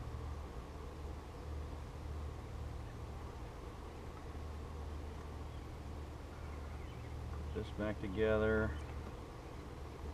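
A hive tool scrapes and pries at wooden frames.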